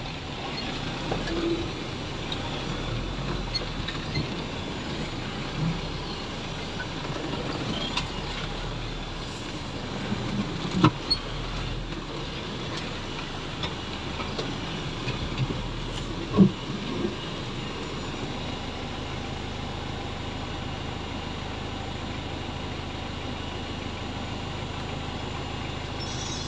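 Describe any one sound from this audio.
A truck engine rumbles steadily nearby.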